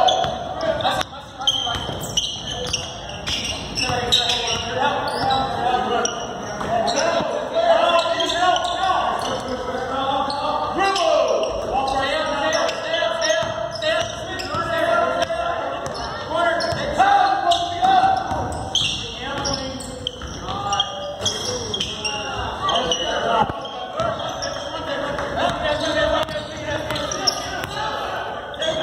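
A basketball bounces on a hard court, echoing in a large gym.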